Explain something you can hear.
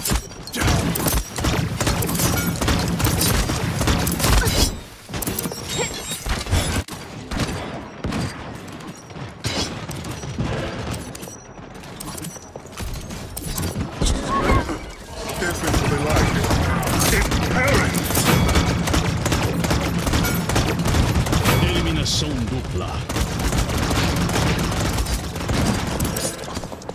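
Energy weapon shots zap and crackle in rapid bursts.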